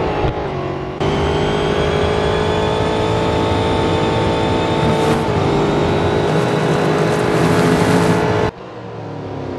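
A racing car engine whines at high revs close by, shifting gears.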